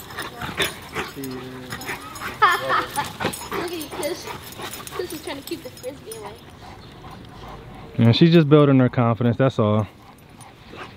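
Dogs growl and snarl while playing.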